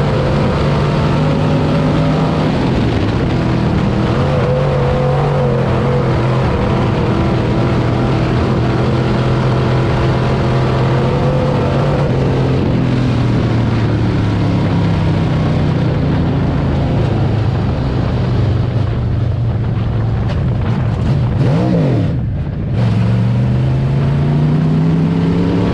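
A race car engine roars loudly from inside the car, revving up and down through the turns.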